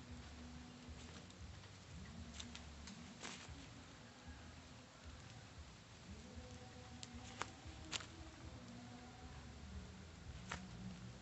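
Burning wood crackles and pops in a small fire.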